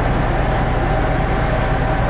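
Water sprays hard from a fire hose.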